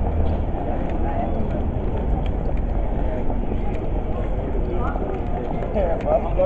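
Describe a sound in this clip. Many people chatter outdoors in a busy open square.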